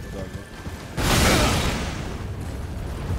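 A sudden magical blast bursts with a loud whoosh.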